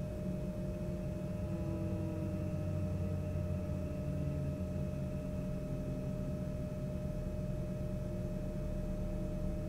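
A jet engine hums steadily with a deep rumble.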